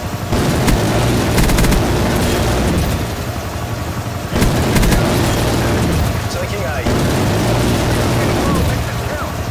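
A heavy gun fires rapid booming bursts.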